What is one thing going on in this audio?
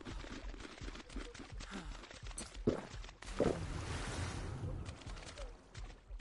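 Water splashes as someone wades through shallow water.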